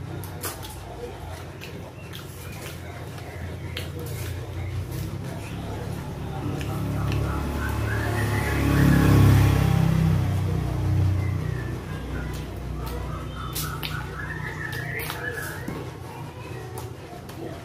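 Fingers squish and mix rice and sauce.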